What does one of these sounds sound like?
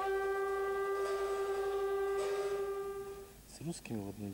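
Monks chant together in a long, steady drone.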